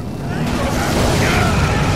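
An explosion bursts with a loud blast.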